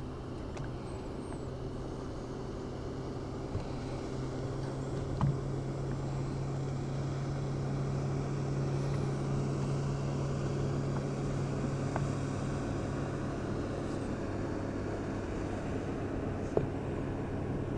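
Small waves lap against a boat's hull.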